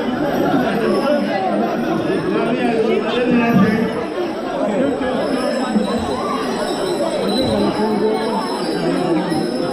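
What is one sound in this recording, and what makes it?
Many people chatter loudly.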